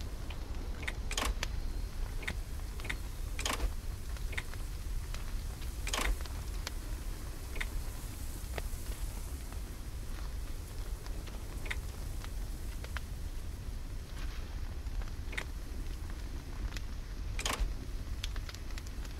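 Short clicks from a video game's menu sound as items are selected.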